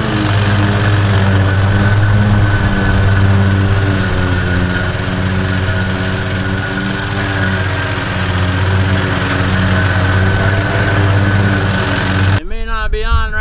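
A small lawn tractor engine runs with a steady rumble.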